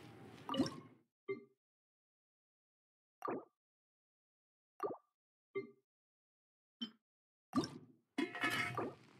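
Short chimes sound as game menu options are picked.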